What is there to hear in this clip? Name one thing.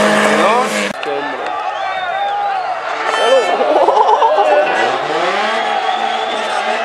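A crowd cheers and shouts excitedly.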